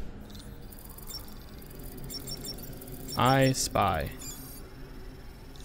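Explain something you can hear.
An electronic device beeps and chirps rapidly.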